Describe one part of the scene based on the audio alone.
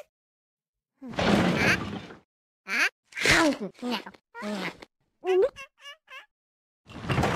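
A cartoon cat munches food with loud chewing noises.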